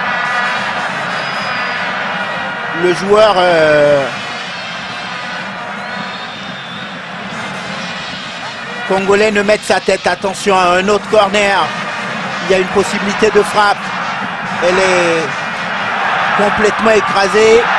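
A large stadium crowd roars and cheers steadily outdoors.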